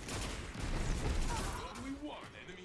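Rapid gunfire blasts close by.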